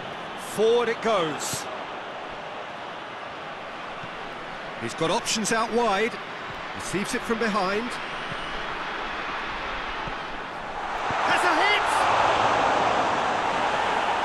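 A large crowd roars steadily in a stadium, swelling louder toward the end.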